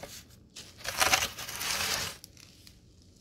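A hand scratches a cardboard pad with a loud rasping.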